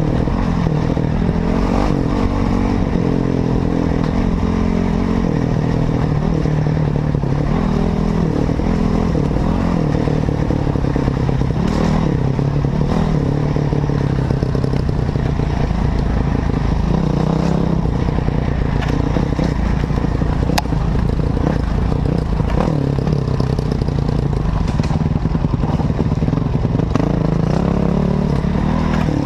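Tyres crunch over a bumpy dirt track.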